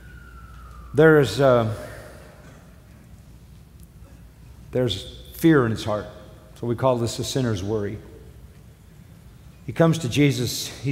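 An elderly man preaches through a microphone in a large hall, speaking slowly with emphasis and pausing often.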